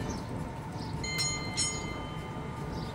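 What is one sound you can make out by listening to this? A tram's wheels squeal briefly on the rails.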